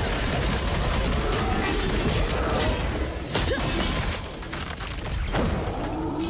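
Game spell effects crash and boom in quick bursts.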